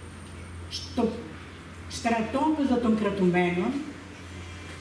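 An elderly woman reads aloud slowly into a microphone.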